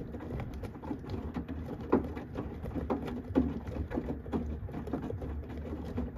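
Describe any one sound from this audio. A washing machine drum turns with a steady low rumble.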